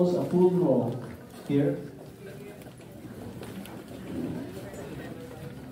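An older man speaks with animation into a microphone in an echoing room.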